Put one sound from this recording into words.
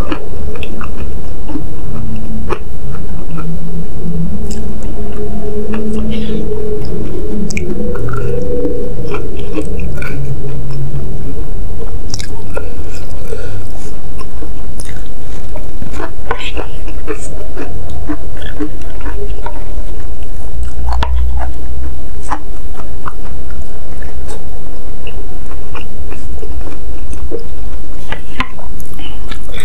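A woman chews food wetly and close to the microphone.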